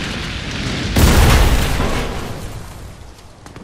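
An explosion booms and rumbles loudly.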